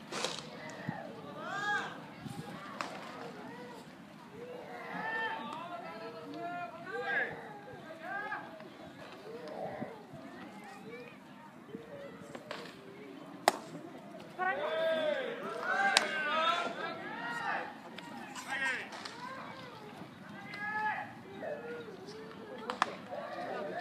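A baseball smacks into a catcher's mitt now and then.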